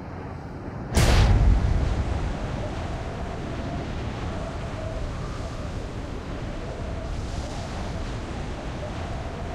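Wind rushes loudly during a freefall.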